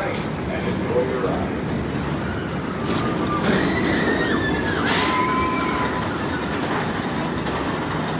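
A roller coaster train roars and rumbles along its track.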